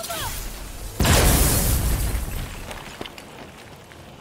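A loud burst of crumbling stone and snow roars out and fades.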